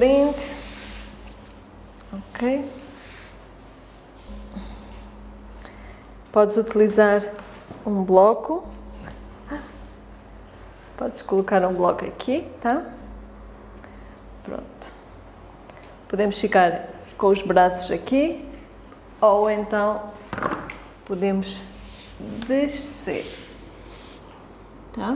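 A woman speaks calmly and slowly, close to a microphone.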